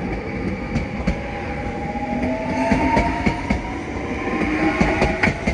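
A train's electric motor whines and glides in pitch.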